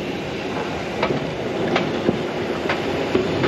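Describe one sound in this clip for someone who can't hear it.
Steel wheels click and clank over rail joints.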